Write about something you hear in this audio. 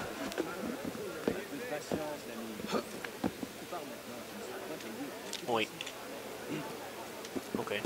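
Hands and feet scrape on stone while climbing a wall.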